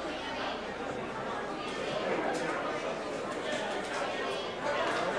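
Several men talk and chatter loudly nearby.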